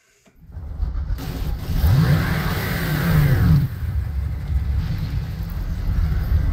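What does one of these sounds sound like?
A vehicle engine rumbles low and steady.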